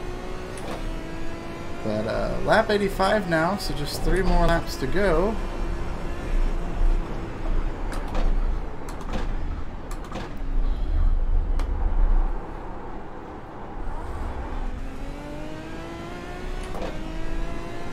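A racing car engine drones and its pitch rises and falls with gear changes.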